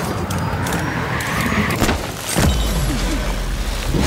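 Bicycle tyres crunch and skid over snowy ground.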